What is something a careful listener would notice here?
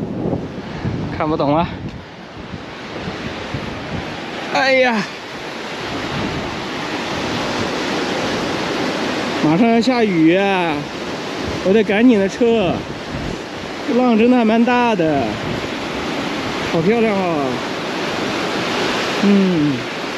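Waves crash and wash over rocks nearby.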